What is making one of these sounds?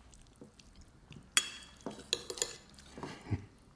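Forks clink against plates.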